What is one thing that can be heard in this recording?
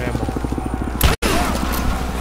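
A gun fires.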